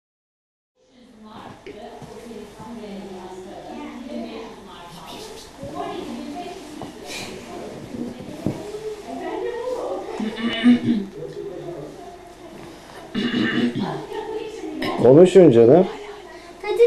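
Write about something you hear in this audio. A young girl talks softly close by.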